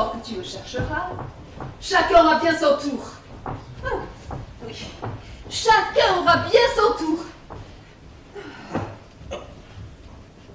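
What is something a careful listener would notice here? A woman speaks with emotion, heard from a distance in a large room.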